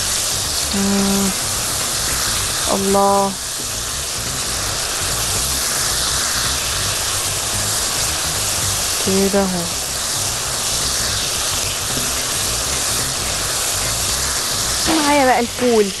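A spatula stirs and scrapes against the bottom of a pan.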